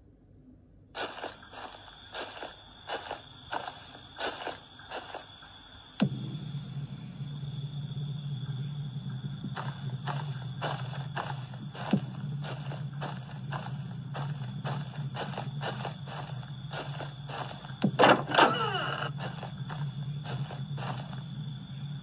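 Game footsteps thud in a quick, even rhythm from a tablet's speaker.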